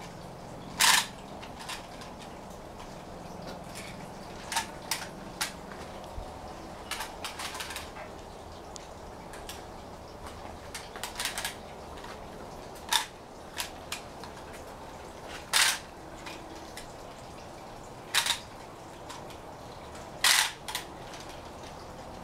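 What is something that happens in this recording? Plastic toys clack and rattle in a small child's hands.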